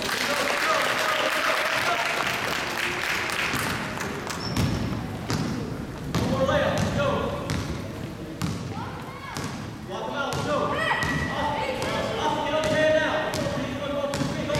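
Children shout and call out in a large echoing gym.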